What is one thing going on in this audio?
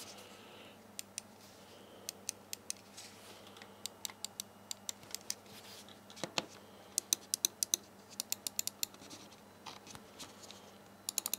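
A computer mouse's buttons click in quick, sharp bursts.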